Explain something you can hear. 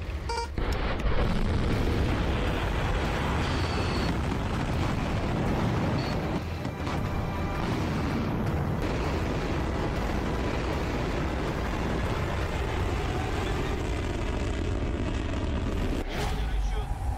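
A rocket launches with a deep, steady roar.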